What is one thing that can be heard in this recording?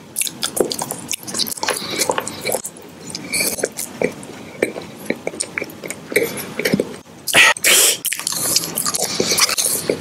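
A hard candy clicks and scrapes against teeth.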